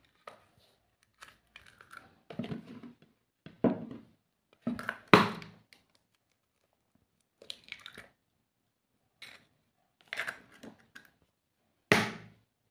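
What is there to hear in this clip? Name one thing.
An eggshell cracks and breaks apart.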